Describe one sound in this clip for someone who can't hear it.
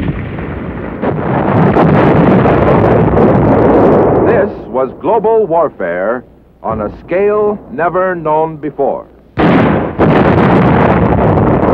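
Shells explode with a deep roar and rumble.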